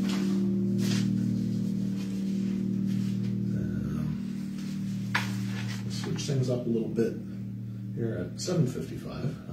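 An electric keyboard plays sustained chords.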